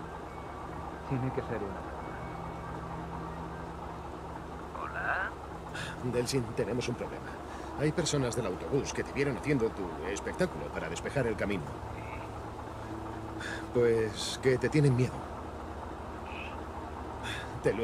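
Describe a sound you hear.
A young man talks on a phone.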